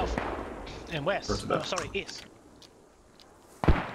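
A rifle clicks and rattles as it is raised.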